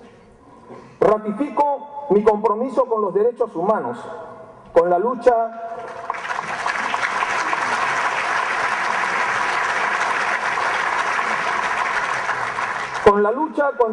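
A man speaks formally through a microphone.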